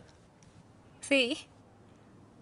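A teenage girl talks and laughs brightly nearby.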